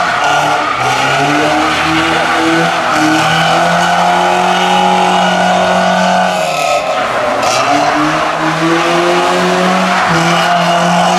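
Tyres squeal and screech on tarmac.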